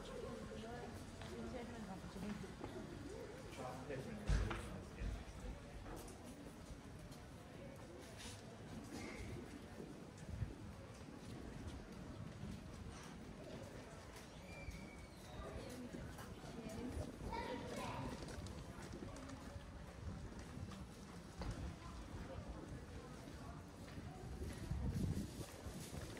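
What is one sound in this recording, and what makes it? Voices of passers-by murmur nearby.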